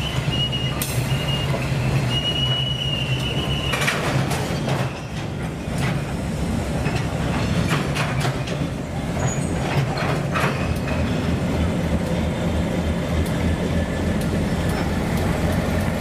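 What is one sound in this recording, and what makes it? A freight train rumbles slowly past close by.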